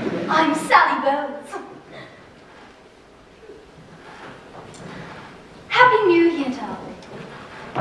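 A woman sings loudly on a stage in a large hall.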